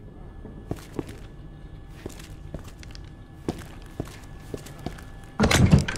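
Footsteps fall steadily on a hard floor.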